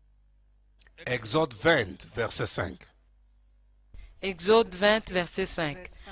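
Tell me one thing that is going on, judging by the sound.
A man preaches with animation into a microphone over loudspeakers.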